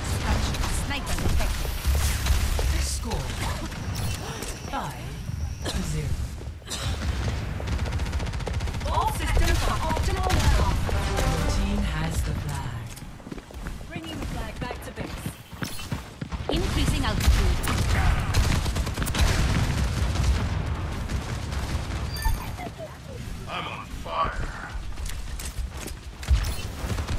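A video game gun fires rapid shots.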